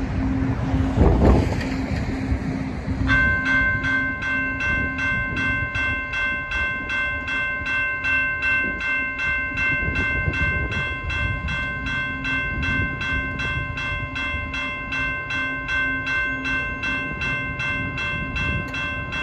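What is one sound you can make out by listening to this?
Wind gusts outdoors, rumbling across the microphone.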